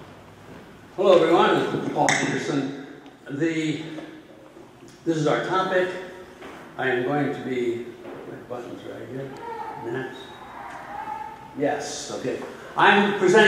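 A man speaks calmly into a microphone, heard through a loudspeaker in a large room.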